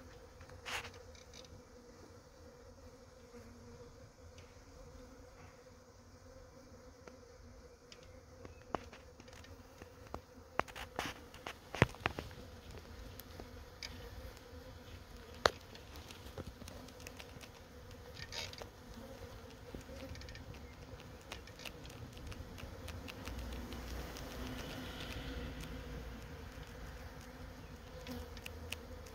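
A swarm of bees buzzes and hums steadily close by.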